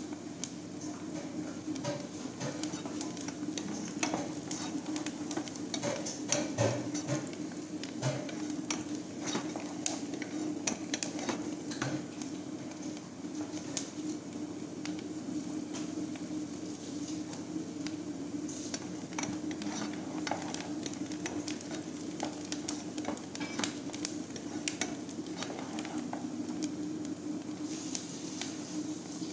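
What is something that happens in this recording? Chopped onions sizzle in oil in a pot.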